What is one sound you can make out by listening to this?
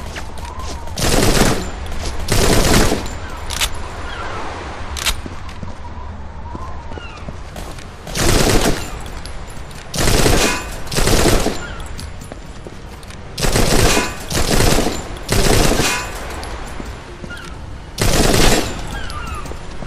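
An assault rifle fires in bursts.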